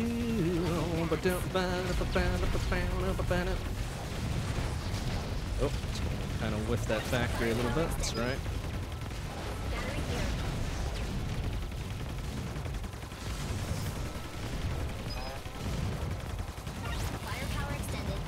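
Video game gunfire and explosions crackle steadily.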